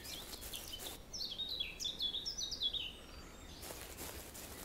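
Short electronic blips chirp rapidly in quick rising and falling steps.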